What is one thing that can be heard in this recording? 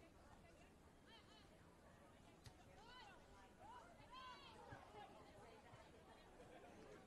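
Young women shout calls to each other far off across an open field.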